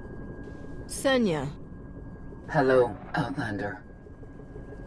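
A woman speaks briefly with a cool, even voice.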